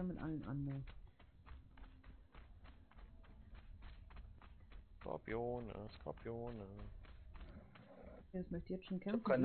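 Footsteps thud quickly on sand.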